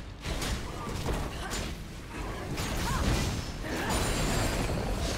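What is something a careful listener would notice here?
Magic spell effects whoosh and crackle in a game battle.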